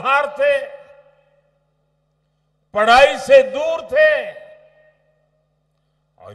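An elderly man speaks forcefully into a microphone, his voice echoing over loudspeakers.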